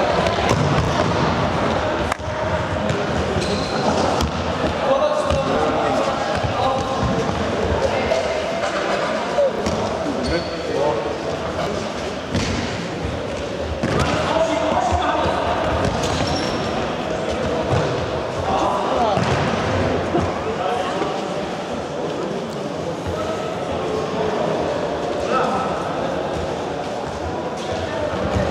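Young boys shout and call out across a large echoing hall.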